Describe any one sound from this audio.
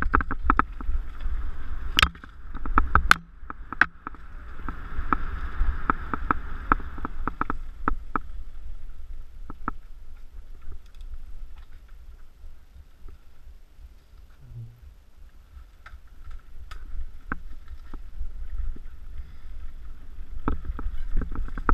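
Bicycle tyres roll fast over a dirt trail.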